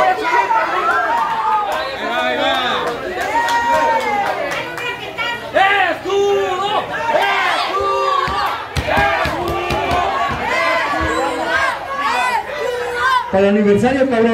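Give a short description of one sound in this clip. A crowd of people shouts and chatters.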